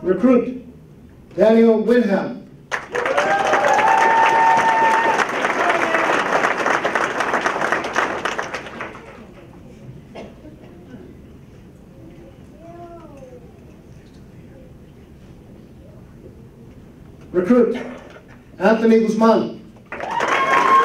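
A man announces names through a microphone in a large room.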